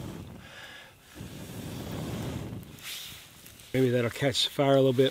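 A campfire crackles quietly.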